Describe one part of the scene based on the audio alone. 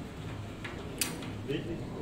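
A metal latch clicks against a window grille.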